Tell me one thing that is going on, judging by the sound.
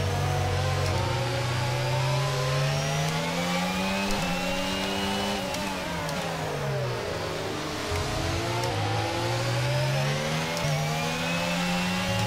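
A racing car engine screams at high revs, rising through the gears and dropping as it slows.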